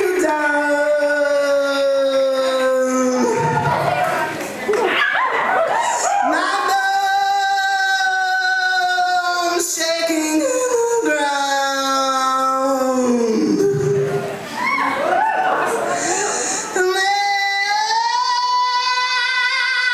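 A man sings long, sliding notes through loudspeakers in a large hall.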